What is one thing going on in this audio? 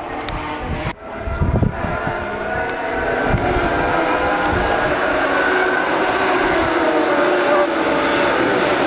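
Several racing car engines roar together as the cars speed closer.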